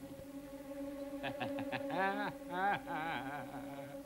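A man sings loudly with a wavering voice.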